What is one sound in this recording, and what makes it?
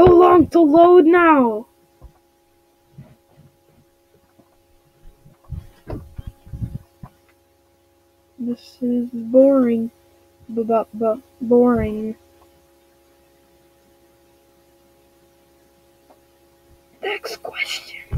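A young girl speaks with animation close to a microphone.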